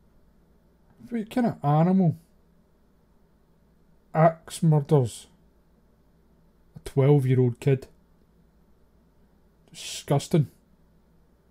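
A man speaks close to a microphone in short, calm phrases with pauses.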